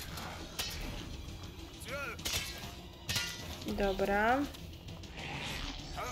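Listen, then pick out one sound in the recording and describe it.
Blades clash and strike in a fast fight.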